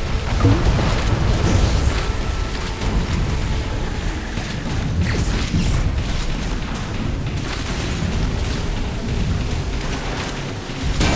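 A speedboat engine roars steadily as the boat races over water.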